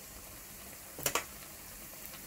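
Tongs clink against a metal pot.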